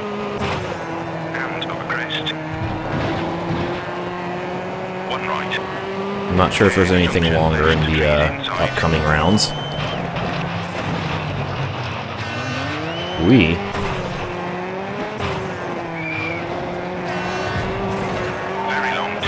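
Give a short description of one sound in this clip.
A rally car engine roars steadily as it races along.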